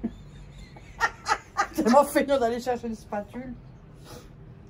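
A middle-aged woman laughs close by.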